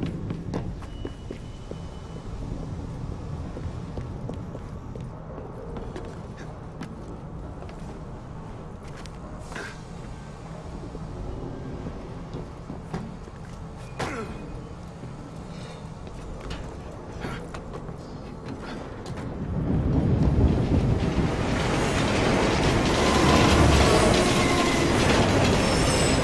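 A low rumbling hum fills a large echoing space.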